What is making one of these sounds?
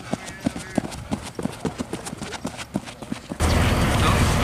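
Quick running footsteps thud on a hard track.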